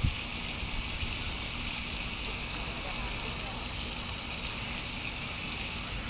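Fish splash and churn in shallow water.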